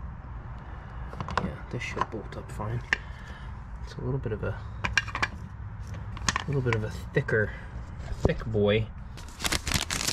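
A caster wheel rattles and clicks as it is turned by hand.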